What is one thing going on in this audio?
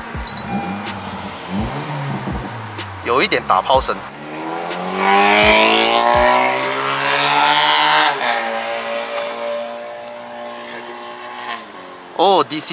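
A car engine revs up and down loudly from inside the car.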